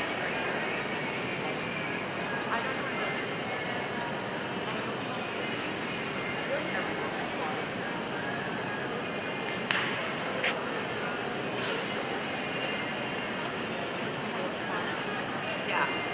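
Hooves thud on soft footing in a large echoing hall.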